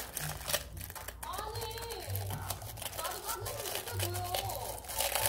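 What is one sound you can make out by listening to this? Thin plastic film crinkles and rustles in hands.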